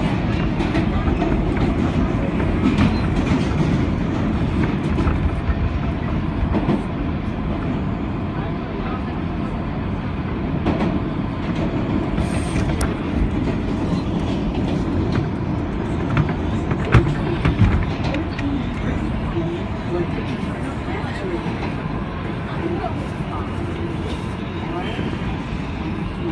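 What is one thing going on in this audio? A vehicle rumbles steadily as it drives along.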